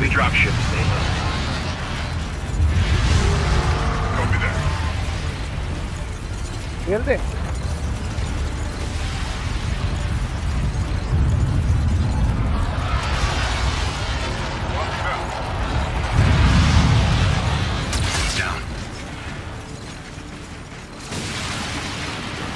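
A deep engine rumble drones overhead.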